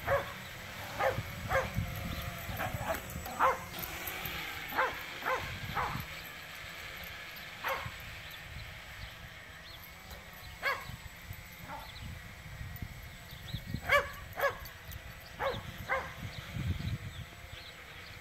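A small animal gives short, high calls now and then.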